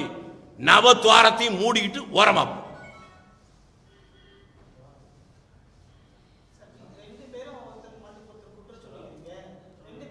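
A middle-aged man speaks animatedly into microphones.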